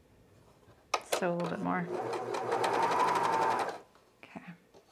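A sewing machine runs fast with a whirring hum.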